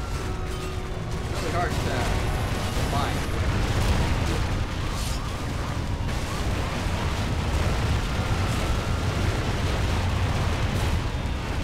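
A young man talks into a headset microphone.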